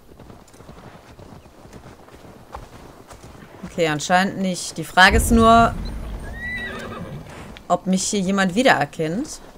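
Horse hooves thud on a dirt path.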